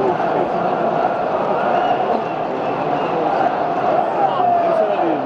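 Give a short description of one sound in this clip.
A large stadium crowd chants and sings loudly all around, in a big open space.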